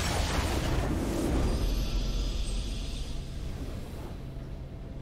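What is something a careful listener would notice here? A triumphant victory fanfare blares and fades.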